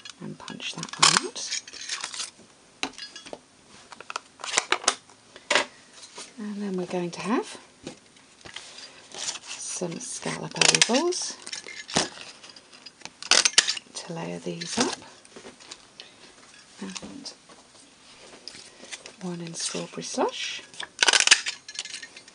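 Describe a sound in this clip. A paper punch snaps shut with a sharp click.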